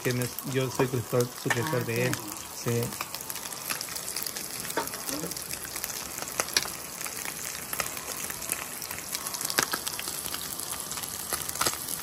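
Fish sizzles and crackles as it fries in a pan.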